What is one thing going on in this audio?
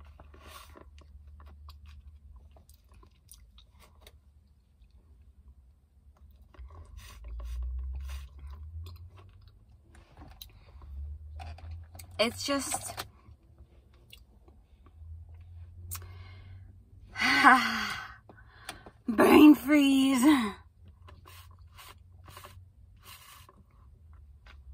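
A young woman sips loudly through a straw close by.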